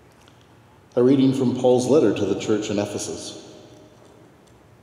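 A man sings a short chant that rings out in a large echoing hall.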